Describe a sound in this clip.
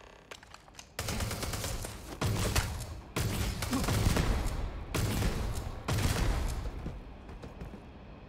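Gunshots fire rapidly and loudly in a room.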